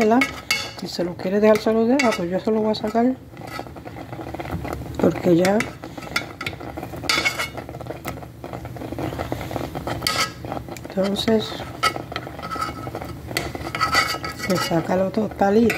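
A spoon scrapes and stirs through thick porridge in a metal pan.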